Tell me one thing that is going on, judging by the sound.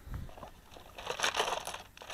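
A cardboard box rustles as a hand handles it.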